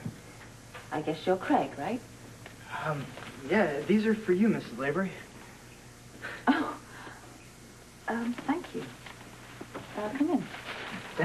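A man speaks warmly.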